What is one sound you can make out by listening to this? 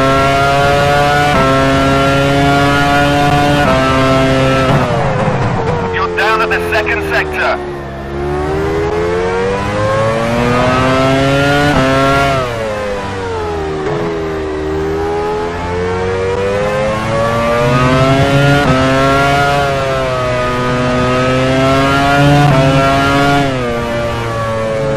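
A racing car engine screams loudly, rising through the gears and dropping as it brakes for corners.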